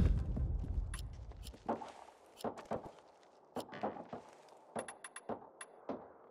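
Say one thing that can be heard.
Short menu clicks tick sharply, one after another.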